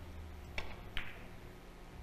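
Billiard balls knock against each other.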